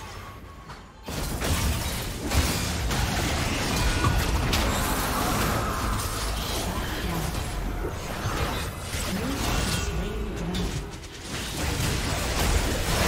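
Magic blasts and hits crackle and thud in a fast fantasy battle.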